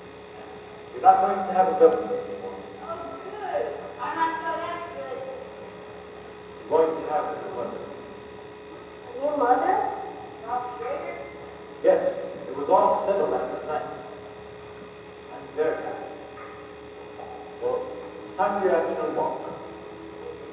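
A man speaks in an echoing hall, heard from a distance.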